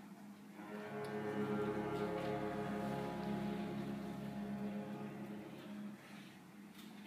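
An orchestra holds a final chord in a large hall and lets it fade.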